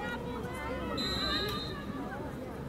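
A referee's whistle blows once sharply.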